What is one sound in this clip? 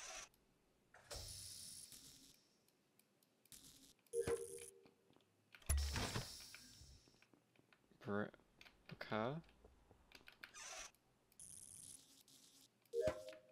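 Electric wires crackle briefly as they connect.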